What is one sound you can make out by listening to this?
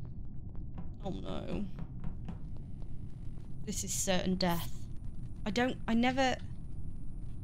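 A woman speaks casually into a nearby microphone.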